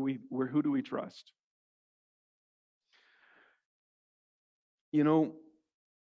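A middle-aged man speaks expressively into a microphone.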